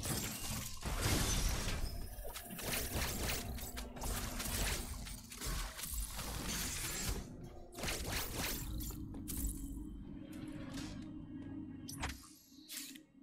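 Game laser shots zap and crackle.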